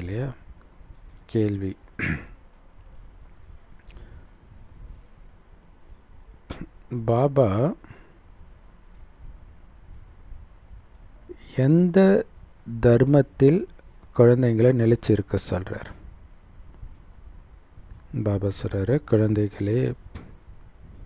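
A middle-aged man sings slowly into a close microphone, in short phrases with pauses.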